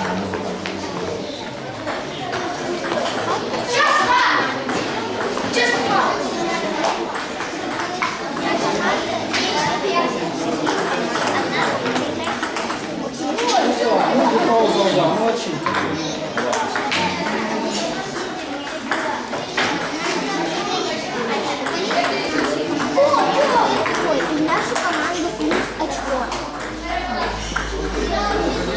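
Many children chatter in a large echoing hall.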